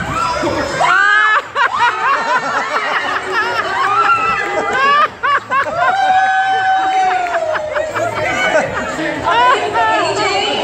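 A woman laughs and shrieks loudly nearby.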